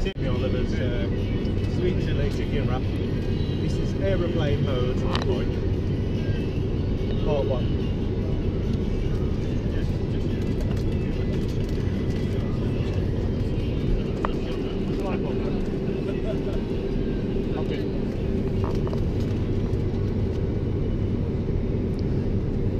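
A steady low roar of airplane engines fills the cabin.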